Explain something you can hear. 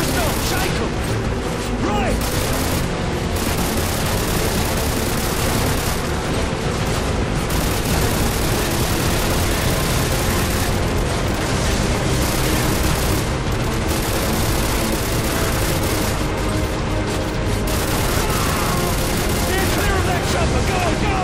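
Water splashes and rushes against a boat's hull.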